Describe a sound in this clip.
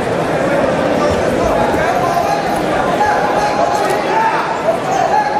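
A crowd of spectators chatters and shouts in a large echoing hall.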